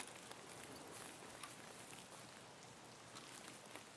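Leaves rustle as branches brush past.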